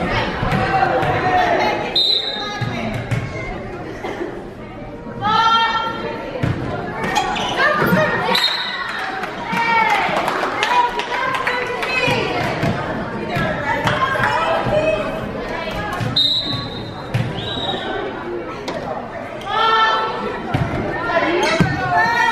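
A crowd chatters and cheers in a large echoing gym.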